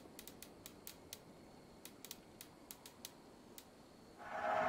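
Soft menu clicks tick quickly as a selection moves between items.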